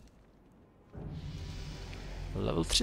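A magic spell crackles with a rising whoosh.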